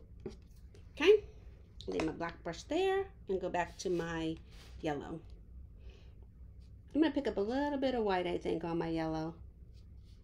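A woman talks with animation, close to a microphone.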